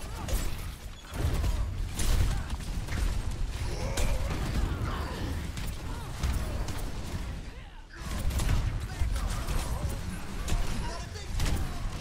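A heavy weapon fires bursts of blasts over and over.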